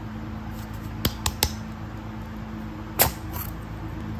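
A plastic egg clicks and snaps open.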